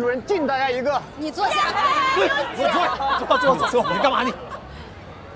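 A group of people chat and laugh loudly together.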